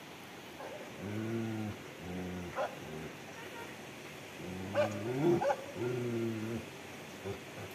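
A large dog barks in short bursts nearby.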